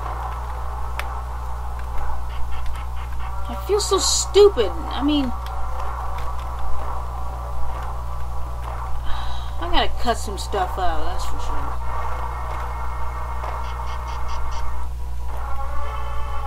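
Retro video game music plays steadily.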